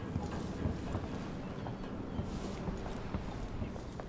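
Sea waves wash steadily against a ship's hull.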